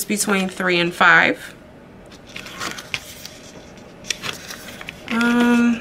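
Paper crinkles as it is bent and peeled.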